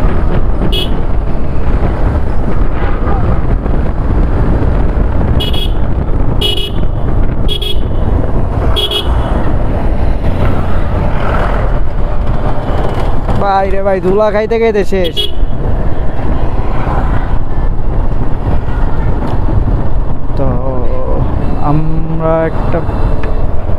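Wind buffets the microphone on a moving motorcycle.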